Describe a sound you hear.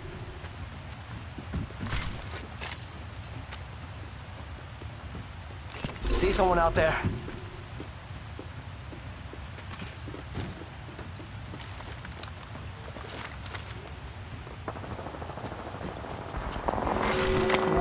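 Footsteps clatter quickly on a metal walkway.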